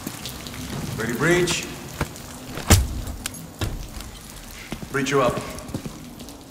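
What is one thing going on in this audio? A man speaks urgently nearby.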